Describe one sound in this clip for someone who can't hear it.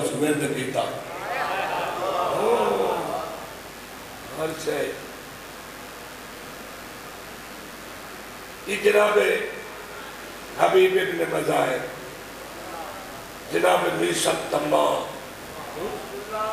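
A man chants a lament loudly into a microphone, in bursts.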